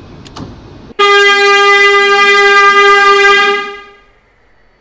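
A train horn sounds a long, steady blast.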